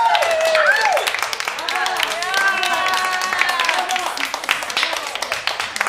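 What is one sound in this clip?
Young women cheer and whoop.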